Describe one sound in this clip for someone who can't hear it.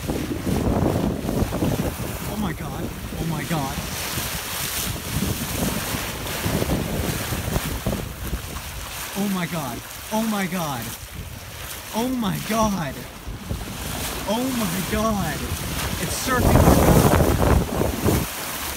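Waves splash and rush against a boat's hull.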